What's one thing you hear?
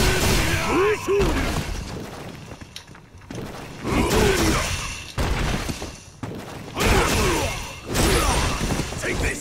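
Punches and kicks land with heavy, punchy hits in a fighting game.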